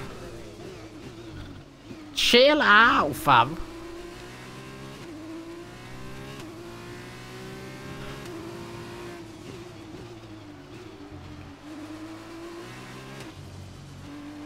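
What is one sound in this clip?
A racing car engine whines and rises and falls in pitch through gear changes.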